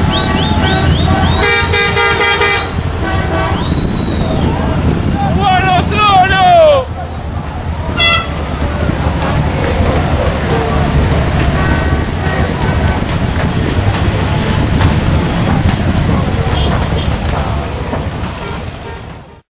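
Buses and cars drive past with a steady engine rumble.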